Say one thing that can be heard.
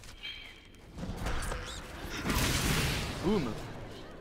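Blades strike and slash in a fight.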